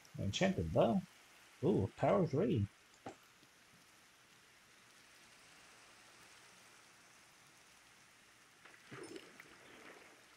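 Rain falls steadily on water.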